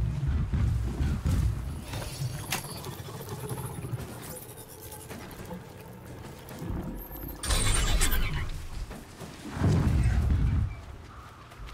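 A heavy machine creature rumbles and thuds nearby.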